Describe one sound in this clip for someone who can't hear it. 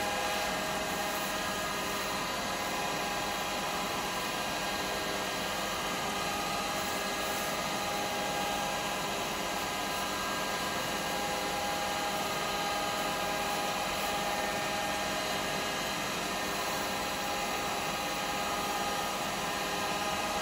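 A paper towel rubs against spinning wood.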